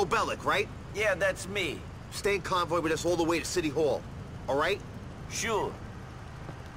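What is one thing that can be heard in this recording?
A man answers briefly in a rough voice.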